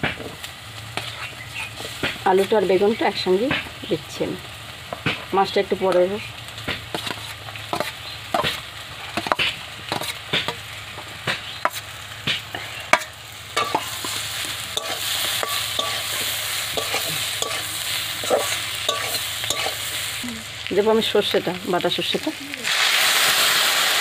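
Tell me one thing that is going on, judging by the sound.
A metal spatula scrapes and clinks against metal pans.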